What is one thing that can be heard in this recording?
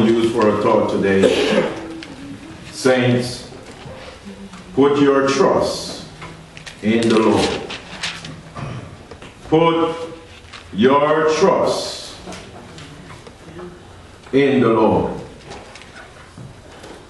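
A man preaches with animation through a microphone in an echoing hall, in short bursts with pauses.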